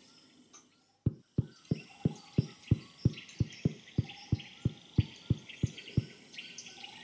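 Footsteps tap in a quick, steady rhythm.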